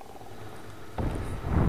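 A flame whooshes and crackles.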